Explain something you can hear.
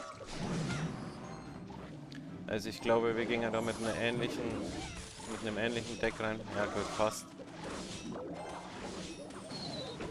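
Cartoonish battle sound effects clash and pop from a mobile game.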